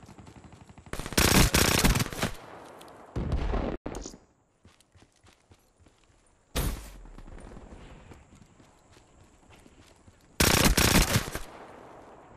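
An automatic rifle fires in short bursts.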